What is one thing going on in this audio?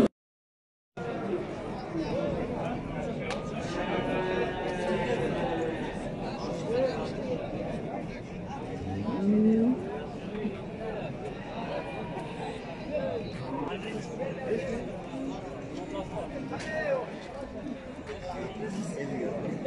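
Men's voices chatter at a distance in an outdoor crowd.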